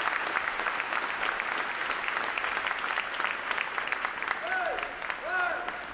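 A crowd applauds in a large hall, and the clapping fades out.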